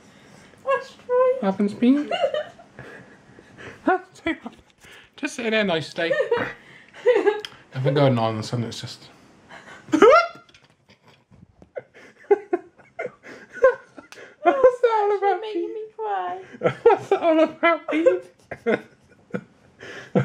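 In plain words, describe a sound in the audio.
A young woman laughs and cries out close by.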